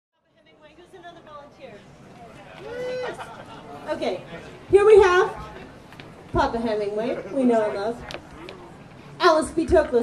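A young woman sings loudly into a microphone through loudspeakers.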